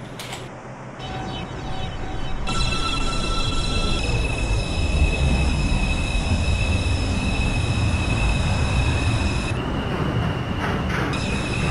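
A subway train's electric motors hum and whine as it pulls away.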